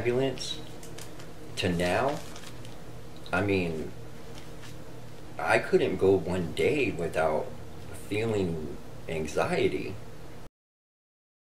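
A man speaks calmly and haltingly close to a microphone.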